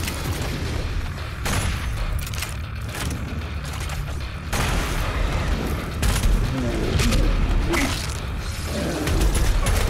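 Gunfire blasts in rapid bursts.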